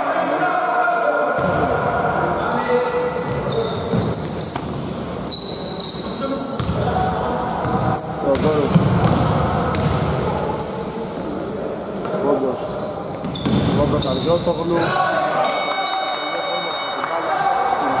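Men shout and call to each other in an echoing hall.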